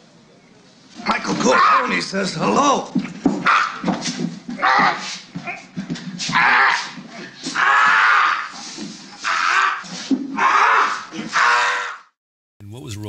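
A man groans and chokes loudly.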